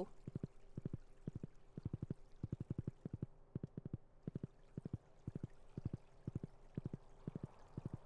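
Hooves clop in quick bursts of rhythmic beats as a horse gallops.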